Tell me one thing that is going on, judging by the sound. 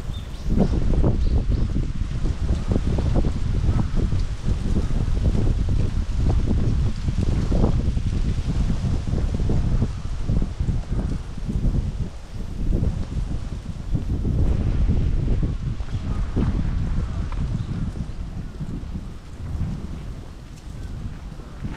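Wind blows and buffets outdoors, steadily throughout.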